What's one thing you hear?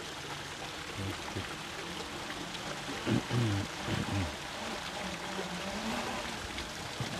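A man speaks in a low, calm voice nearby, outdoors.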